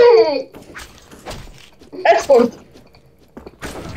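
A knife stabs into a body with wet thuds.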